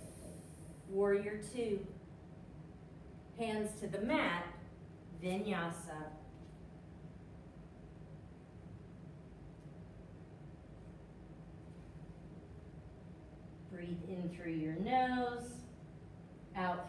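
A woman speaks calmly and clearly, close by.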